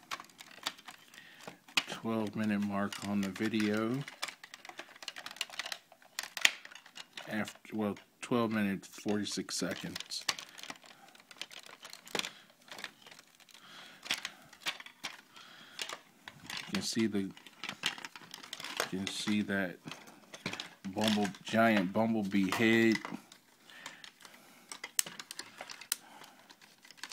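Plastic toy parts click and snap as hands twist and fold them.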